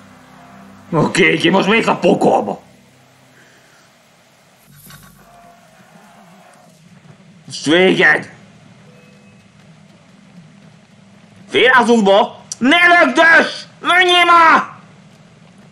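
A young man talks with animation close to a microphone, in short bursts.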